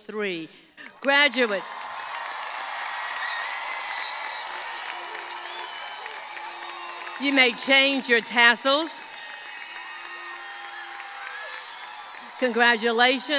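A large outdoor crowd cheers and chatters.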